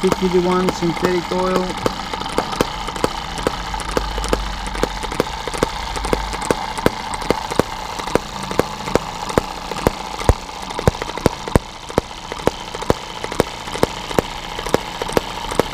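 A small engine runs with a steady, rapid ticking of sharp clicks.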